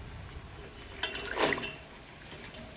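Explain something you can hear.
A plastic strainer knocks and rattles against a pot.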